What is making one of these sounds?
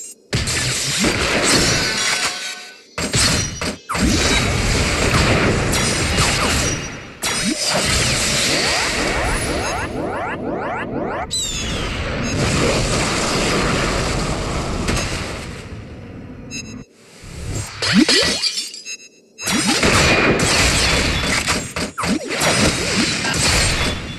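Swords clash in a battle.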